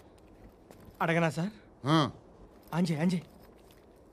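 A man speaks forcefully and with emotion, close by.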